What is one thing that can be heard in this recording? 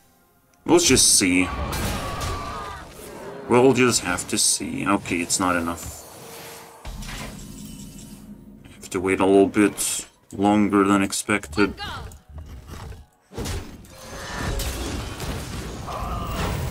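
Playful magical sound effects chime, whoosh and sparkle.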